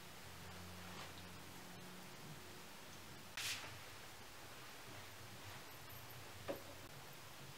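Small objects knock lightly as they are set down.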